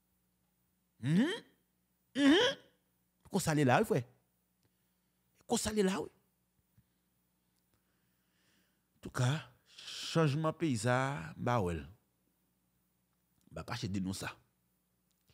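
A young man speaks close into a microphone in short, expressive bursts with pauses.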